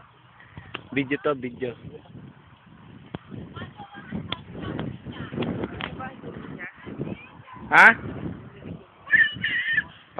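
Young people chat and call out across an open field.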